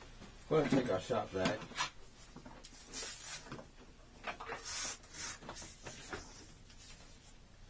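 A plastic vacuum hose knocks and rattles as it is handled.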